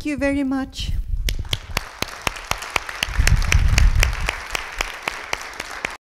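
Applause rises from an audience.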